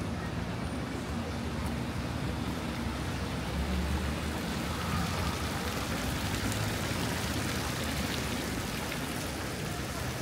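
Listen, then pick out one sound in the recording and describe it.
Water from a fountain splashes and trickles steadily nearby.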